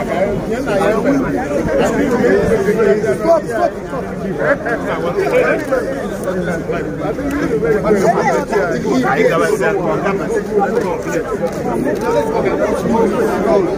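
A large crowd of men and women talks and calls out loudly all around, close by.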